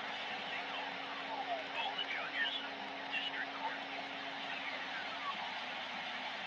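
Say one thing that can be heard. Warbling, gliding whistles sound through the static of a radio loudspeaker.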